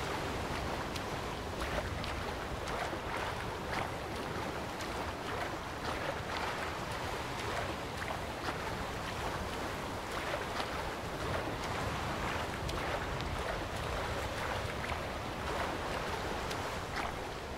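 A swimmer splashes through the water with regular strokes.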